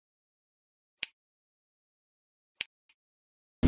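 Menu buttons click sharply.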